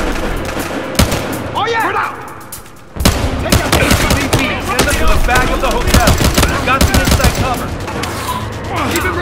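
Pistol shots ring out in quick bursts, echoing in an enclosed space.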